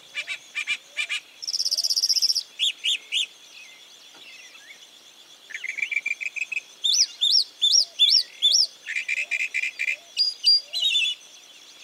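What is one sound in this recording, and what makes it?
A mockingbird sings varied, repeated phrases.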